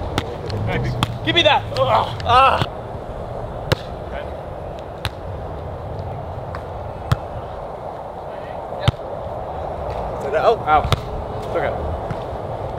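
A young man shouts out during play outdoors.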